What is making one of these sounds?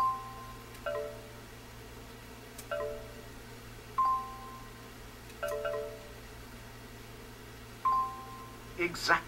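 Game menu beeps chime as letters are chosen.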